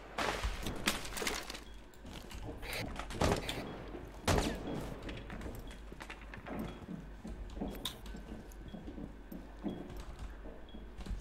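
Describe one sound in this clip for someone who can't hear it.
Footsteps tap on a hard floor and stairs.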